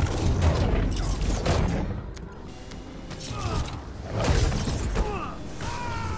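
Energy blasts crackle and boom in a fight.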